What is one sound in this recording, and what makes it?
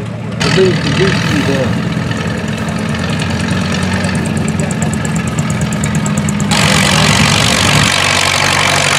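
A small motor cart putters past.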